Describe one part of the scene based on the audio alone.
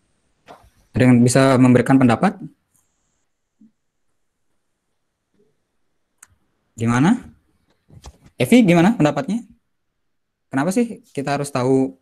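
A young man speaks calmly through an online call, in short bursts with pauses.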